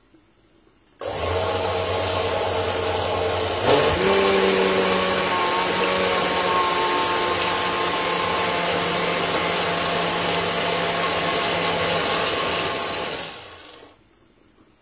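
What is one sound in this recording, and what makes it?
A blender whirs loudly.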